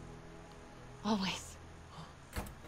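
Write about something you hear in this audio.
A young woman answers warmly.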